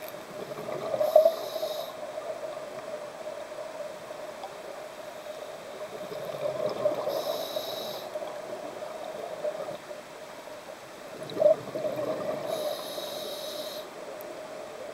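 A scuba diver breathes through a regulator in slow, regular hissing breaths.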